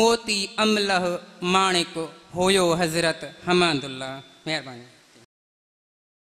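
A man reads aloud through a microphone and loudspeakers.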